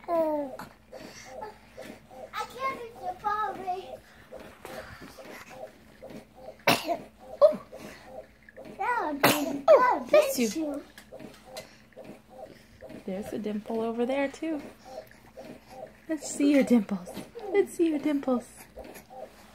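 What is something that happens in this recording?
A baby coos and babbles softly close by.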